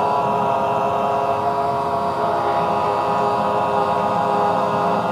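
A group of men and women hum a steady, droning chord together.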